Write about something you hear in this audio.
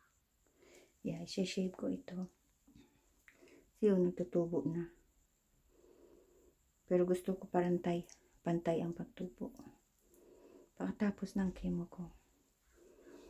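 A middle-aged woman speaks calmly close by, slightly muffled.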